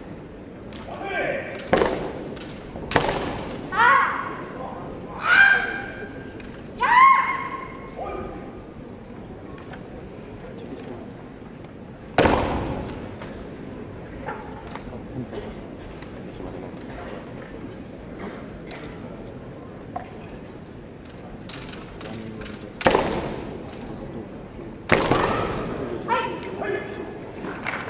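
Young men shout sharp, piercing cries in an echoing hall.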